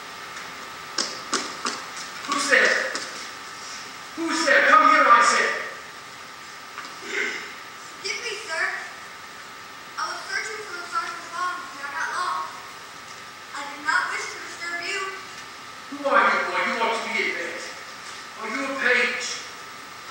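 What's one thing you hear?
A man speaks loudly and dramatically from a distance.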